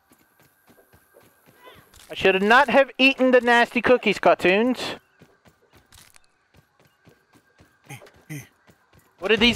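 Soft footsteps patter on soil.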